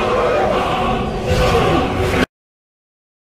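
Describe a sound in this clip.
A huge dragon roars loudly.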